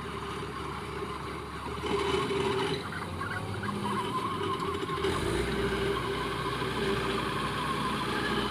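A combine harvester's engine rumbles and drones steadily close by.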